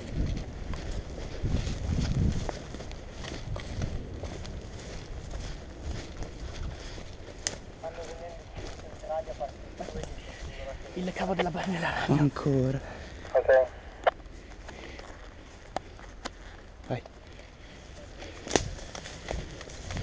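Footsteps run through leaf litter and undergrowth.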